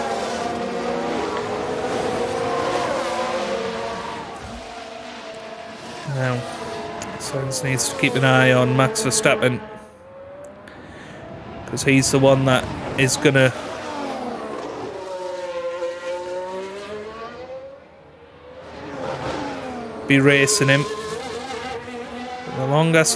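A racing car engine screams past, its pitch rising and falling as it changes gear.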